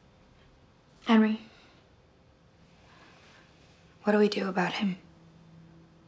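A second young woman answers quietly, close by.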